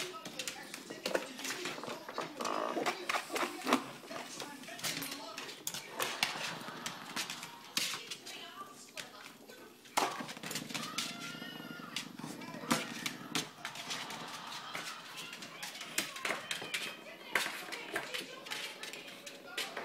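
Cats scuffle and patter on a hard floor.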